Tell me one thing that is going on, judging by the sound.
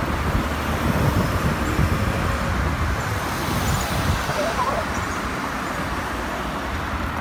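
Wind rushes loudly past the rider.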